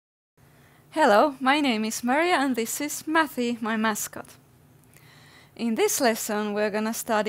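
A woman speaks cheerfully and animatedly close to a microphone.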